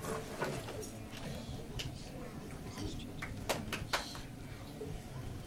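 A crowd murmurs quietly nearby.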